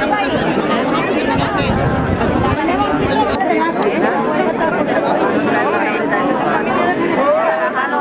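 A crowd of men and women talk over one another close by.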